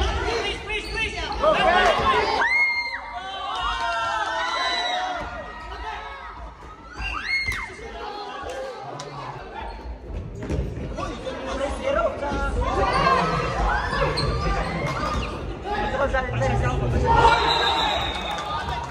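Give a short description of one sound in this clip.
Men call out to each other across a large echoing hall.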